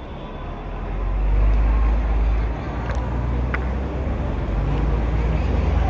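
A bus engine rumbles close by.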